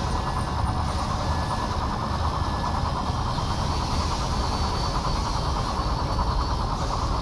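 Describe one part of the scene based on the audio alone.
Spinning saw blades whir and grind steadily.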